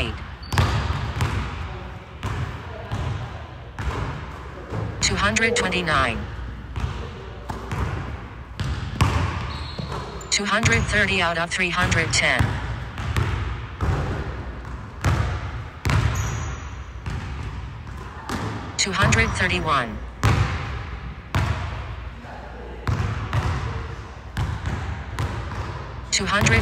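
A basketball bounces repeatedly on a hard floor in a large echoing gym.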